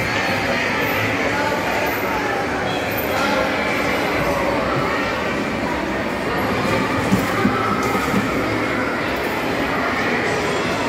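Children's voices and chatter fill a busy, echoing indoor space.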